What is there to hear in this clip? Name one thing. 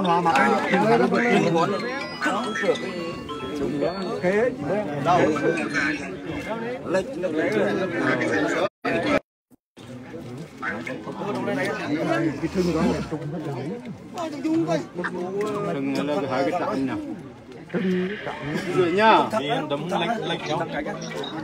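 A crowd of men and women talk and call out close by, outdoors.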